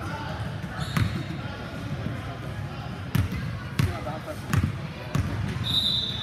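A basketball bounces on a wooden floor in a large echoing hall.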